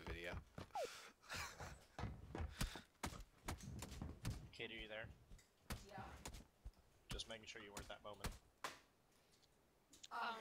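Footsteps thud on a hollow wooden floor.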